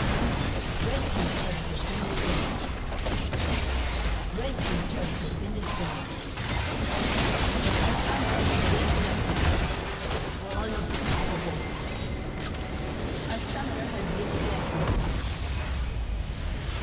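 Game spell effects crackle and clash in a busy fight.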